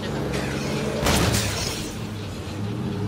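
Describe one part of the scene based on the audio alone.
A van bumps hard over rough ground.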